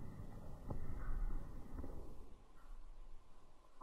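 A cat lands with a soft thump on the floor.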